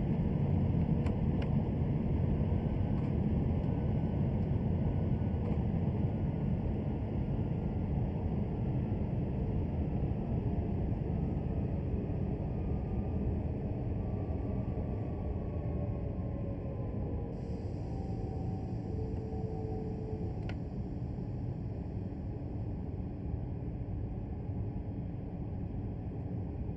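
A train rumbles steadily along the track, slowly getting quieter as it slows down.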